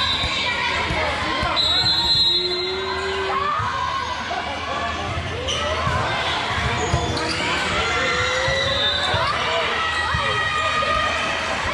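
Many voices of girls and adults chatter and call out across an echoing indoor hall.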